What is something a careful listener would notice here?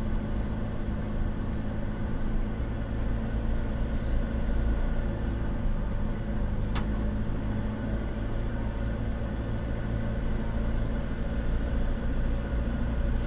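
Tyres roll slowly over a rough narrow road.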